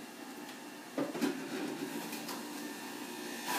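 A plastic juicer part clunks into place.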